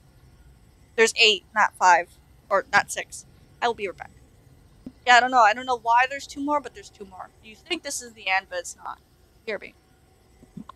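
A young woman talks with animation into a microphone, close by.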